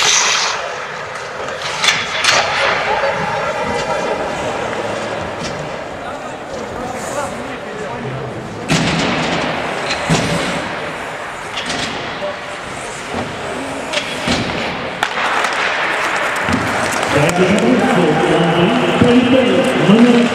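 Skates scrape and hiss on the ice.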